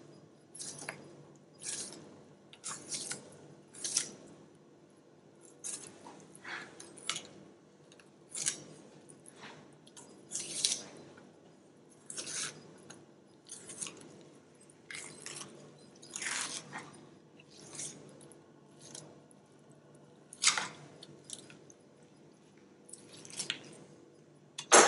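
Fish flesh peels and tears wetly from the bones in short bursts.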